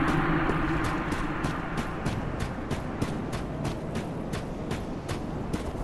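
Armoured footsteps clatter quickly over stone.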